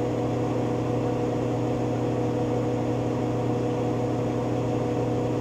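A washing machine drum spins fast with a steady hum.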